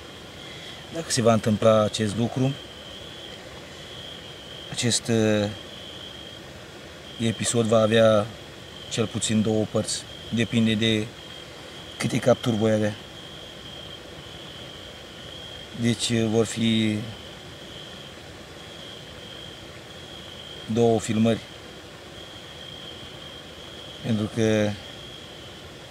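A middle-aged man speaks calmly close by, in short bursts with pauses.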